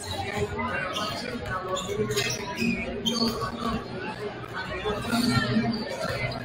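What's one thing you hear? Basketballs bounce on a hardwood floor in a large echoing gym.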